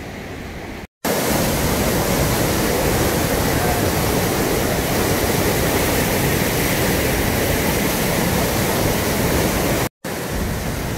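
A large waterfall roars.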